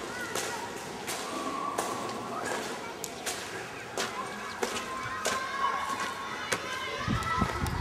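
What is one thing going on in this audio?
Children shout and call out in the distance.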